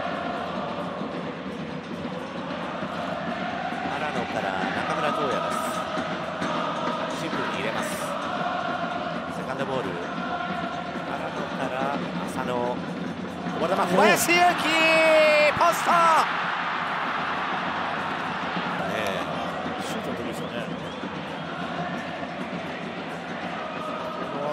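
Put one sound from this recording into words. A large stadium crowd chants and sings steadily.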